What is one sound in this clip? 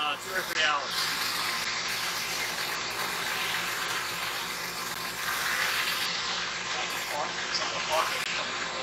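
A pump motor hums steadily.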